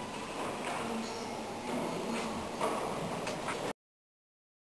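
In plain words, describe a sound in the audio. A man speaks steadily into a microphone in an echoing hall.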